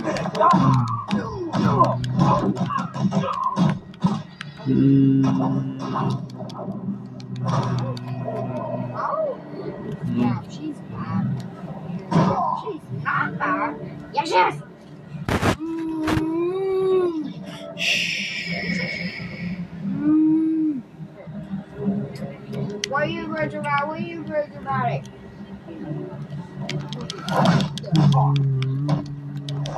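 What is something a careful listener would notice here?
Punches and thuds of a video game fight play loudly from a television speaker.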